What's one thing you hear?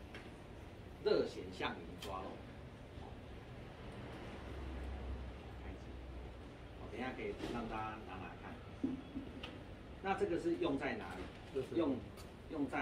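A middle-aged man speaks to a group nearby.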